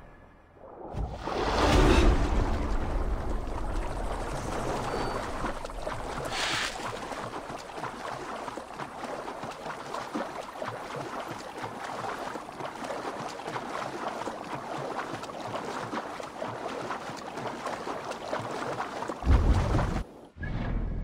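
Water splashes steadily as someone swims.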